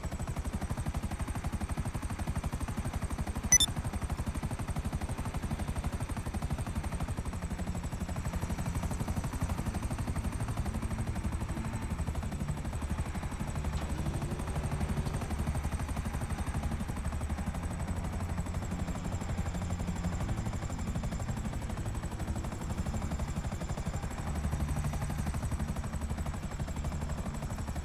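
A helicopter's rotor chops steadily and loudly throughout.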